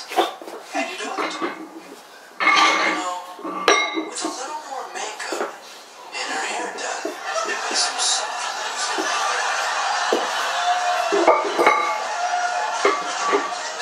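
Metal weight plates clank against each other.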